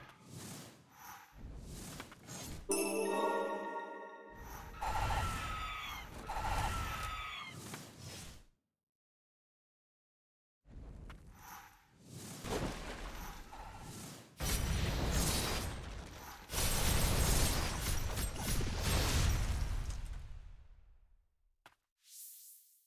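Game sword slashes and impacts clash rapidly.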